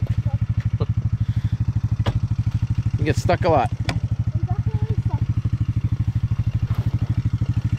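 A dirt bike engine chugs steadily up close.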